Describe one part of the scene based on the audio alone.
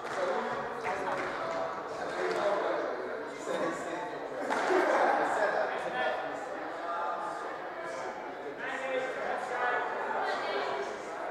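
A squash ball smacks against the walls in a fast rally.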